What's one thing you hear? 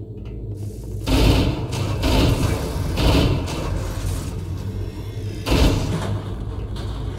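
A plasma blast explodes with a loud crackling burst.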